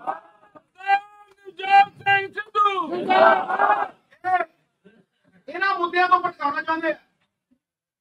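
A man speaks forcefully into a microphone, heard over a loudspeaker.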